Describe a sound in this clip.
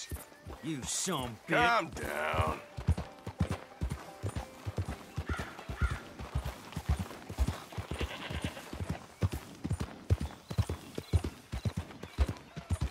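A horse's hooves thud steadily at a trot on a dirt path.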